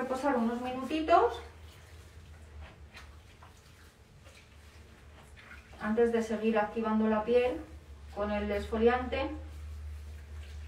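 A young woman speaks close by in a calm voice.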